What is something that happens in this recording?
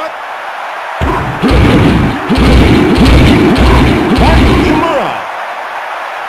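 Football players thud and crash together in a tackle.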